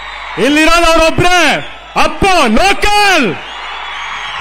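A young man shouts loudly into a microphone over loudspeakers.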